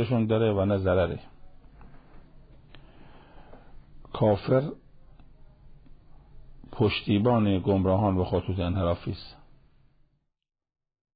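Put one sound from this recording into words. An elderly man speaks calmly and steadily into a microphone, with short pauses.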